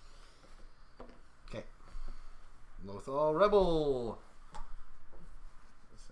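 Small plastic game pieces tap and slide on a table.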